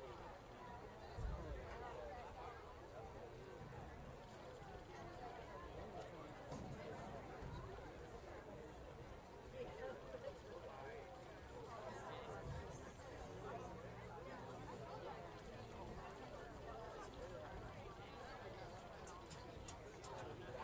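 A small crowd of men and women chatters in the distance outdoors.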